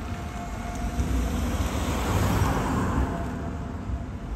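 A car passes close by with a rushing whoosh.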